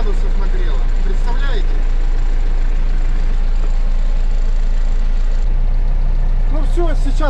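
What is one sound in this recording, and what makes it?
A tractor engine idles with a steady low rumble, heard from inside the cab.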